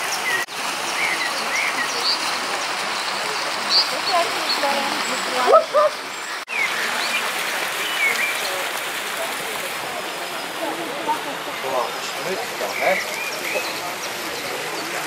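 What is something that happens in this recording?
A crowd of visitors chatters softly in the distance outdoors.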